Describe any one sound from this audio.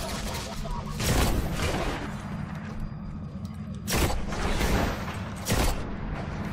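A rifle fires single loud cracks.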